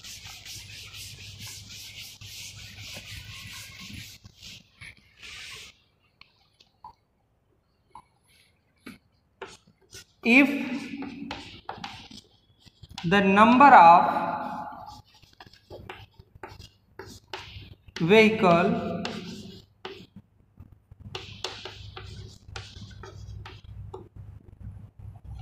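Chalk scratches and taps on a chalkboard.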